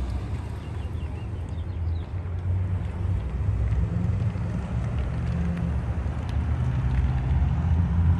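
A pickup truck drives slowly past.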